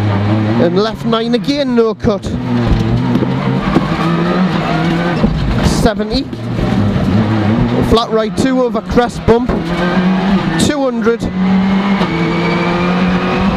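A rally car engine roars loudly from inside the car, revving hard and dropping as the gears change.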